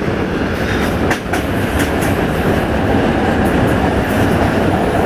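Wind rushes past a moving train.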